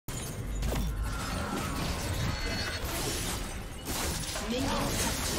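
Video game spell effects whoosh and crackle amid combat.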